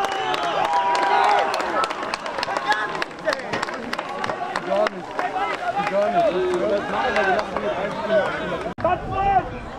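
Young men shout and cheer outdoors on a sports field.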